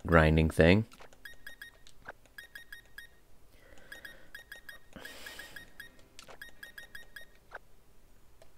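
Game menu sounds beep softly as selections change.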